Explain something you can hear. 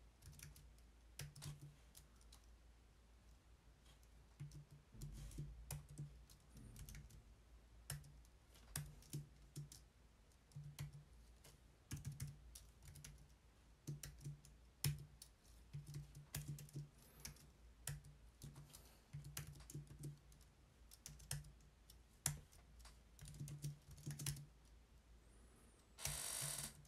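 Keyboard keys click in quick bursts of typing.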